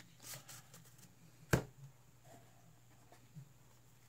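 A card taps into a deck box.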